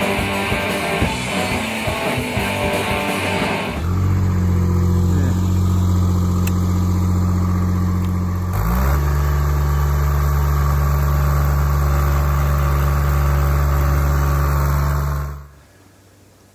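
A machine's engine hums steadily up close.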